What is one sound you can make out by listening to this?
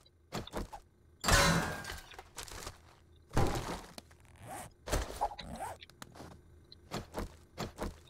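A pickaxe strikes hard metal with loud clangs.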